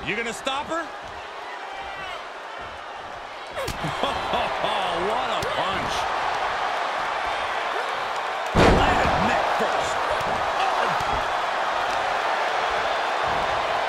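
A crowd cheers in a large arena.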